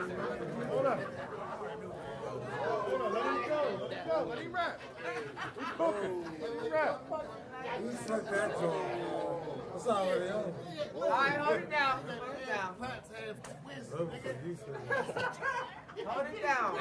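A man raps loudly and with energy, close by.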